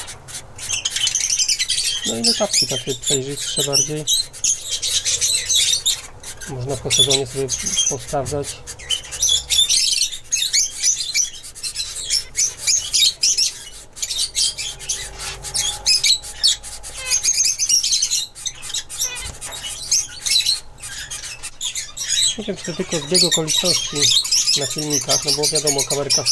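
Small finches chirp and twitter busily close by.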